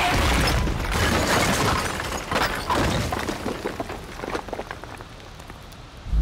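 Concrete blocks crash and tumble loudly.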